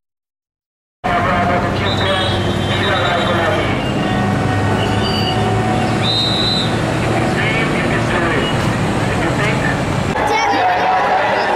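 A large crowd chatters and cheers outdoors.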